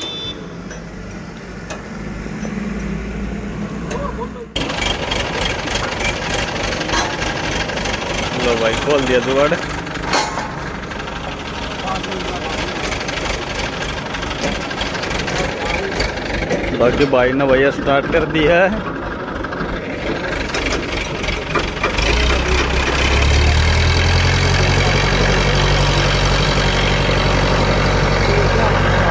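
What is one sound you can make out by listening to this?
Metal tools clink and scrape against farm machinery.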